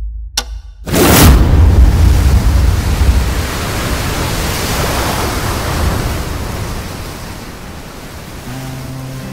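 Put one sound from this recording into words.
Waves crash and roar onto the shore.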